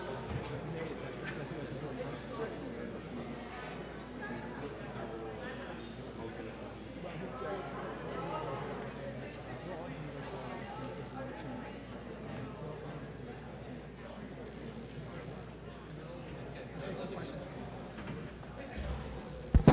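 A crowd of men and women chat in a low murmur in a large hall.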